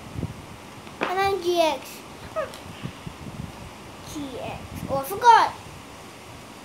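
A young boy speaks briefly close by.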